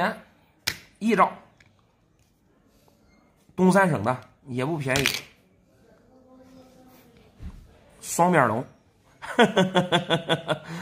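Plastic coin capsules click softly against each other in hands.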